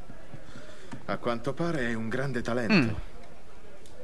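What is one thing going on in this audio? A man speaks in a low, calm voice, close by.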